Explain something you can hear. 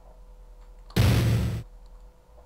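A video game menu makes a short sound as a selection is made.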